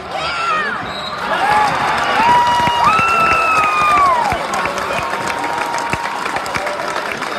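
A crowd erupts in loud cheering.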